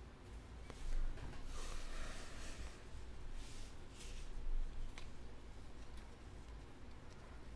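Trading cards rustle and slide as hands shuffle through a stack.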